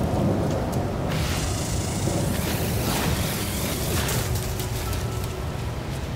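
A laser beam hums and crackles as it blasts a plant.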